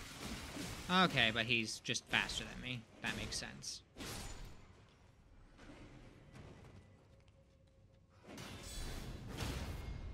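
Metal blades clash and ring in a fight.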